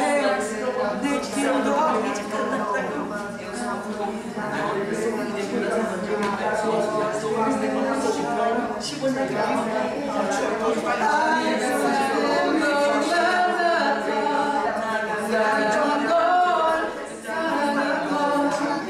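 Music plays over loudspeakers.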